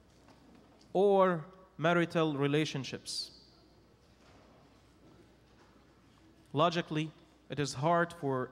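A middle-aged man chants in a singing voice into a microphone, in short phrases with pauses between them.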